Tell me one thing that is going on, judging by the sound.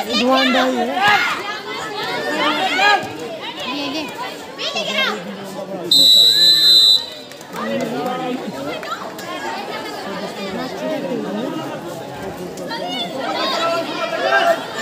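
A large crowd of young people cheers and shouts excitedly outdoors.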